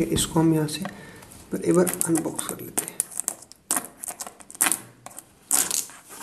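A knife blade scrapes and slices through plastic wrap.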